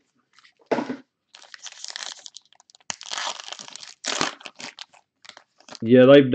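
A foil card pack crinkles and tears as hands open it.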